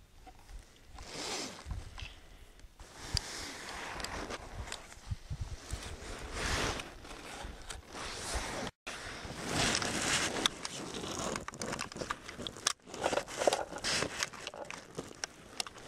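Gloved hands rustle against stiff clothing.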